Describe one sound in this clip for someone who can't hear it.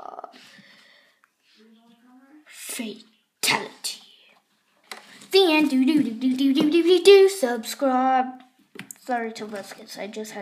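Small plastic toy parts click and knock.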